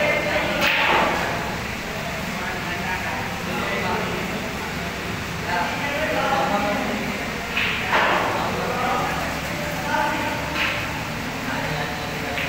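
Young men talk nearby.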